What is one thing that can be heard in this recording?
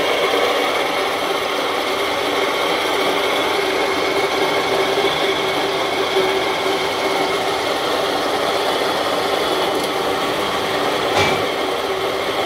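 A stone flour mill runs, grinding grain with a steady hum and rasp.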